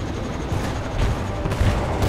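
Aircraft engines roar overhead.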